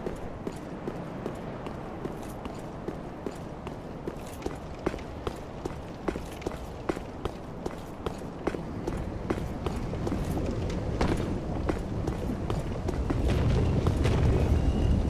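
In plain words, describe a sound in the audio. Armoured footsteps clank steadily on stone and tiles.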